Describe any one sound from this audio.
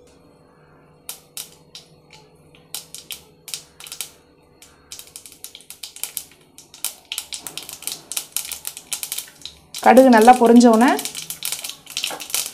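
Hot oil sizzles and pops in a pan, growing busier.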